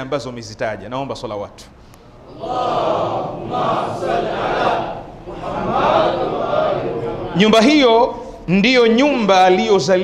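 A man speaks into a microphone, chanting with feeling.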